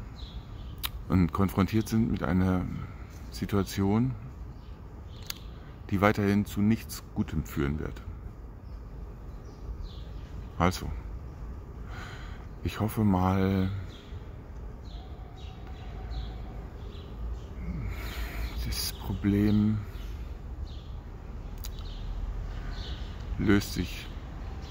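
A middle-aged man speaks calmly close to the microphone, with pauses.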